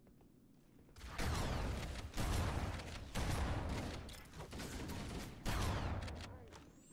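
Explosions boom and rumble loudly in short bursts.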